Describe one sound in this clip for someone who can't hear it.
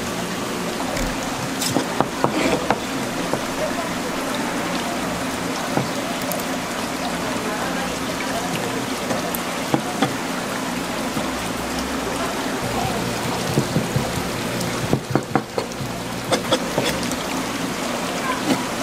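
A knife taps and scrapes on a plastic cutting board.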